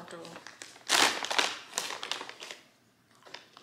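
A packet crinkles close by.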